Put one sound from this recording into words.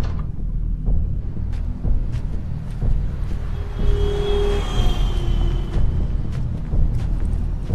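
Footsteps tap slowly on wet pavement.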